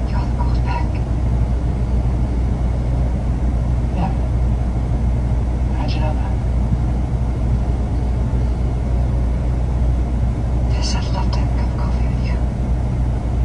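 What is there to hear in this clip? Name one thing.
A woman speaks urgently, heard faintly through a television speaker.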